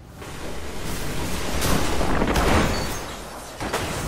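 Energy blasts whoosh and crackle in a game.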